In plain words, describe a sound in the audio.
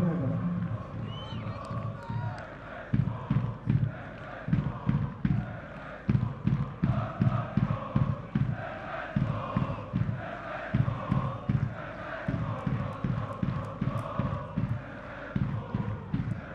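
A crowd chants loudly in a large stadium.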